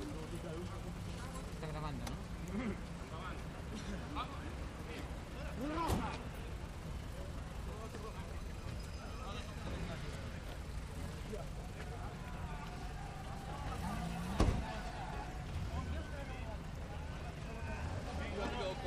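A crowd of men talk and shout over one another outdoors.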